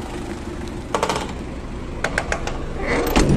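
A metal cargo door rattles and clanks.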